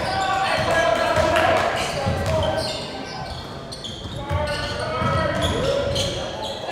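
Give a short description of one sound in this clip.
A basketball is dribbled on a hardwood floor in a large echoing hall.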